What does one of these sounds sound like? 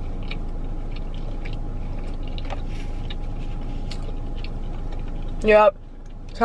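A young woman chews food noisily up close.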